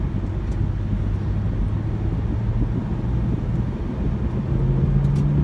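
A car engine hums low and steady from inside the cabin, rising in pitch near the end.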